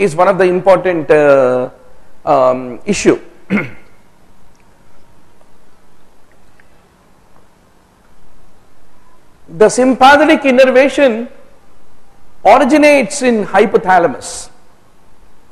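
A middle-aged man lectures calmly through a microphone, pausing between phrases.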